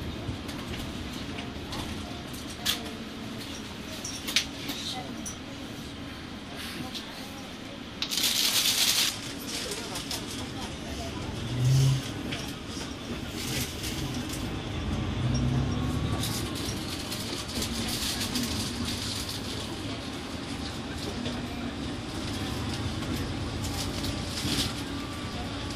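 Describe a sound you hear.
A bus engine rumbles steadily from inside.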